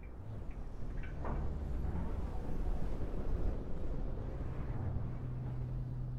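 A heavy vehicle engine rumbles steadily.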